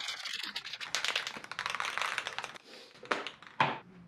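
A spray can rattles as it is shaken.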